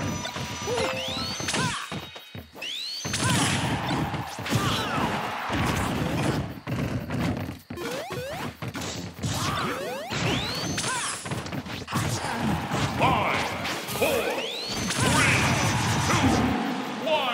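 Video game fighters land hits with sharp whooshes and impact bursts.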